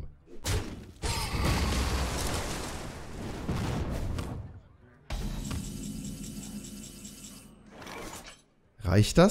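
Video game sound effects whoosh and chime.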